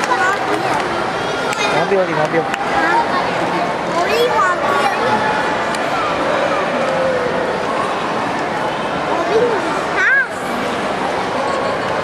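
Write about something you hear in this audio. Young children chatter and call out in a small crowd nearby.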